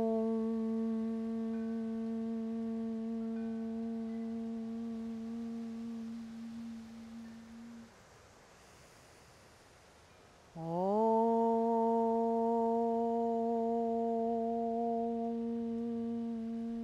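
A woman chants a long, steady note close by, pauses, then begins again with a slight rise in pitch.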